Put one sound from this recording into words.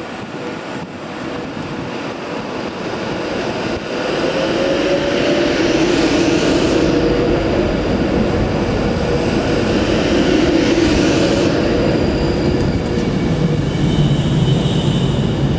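Train wheels click and rattle over rail joints.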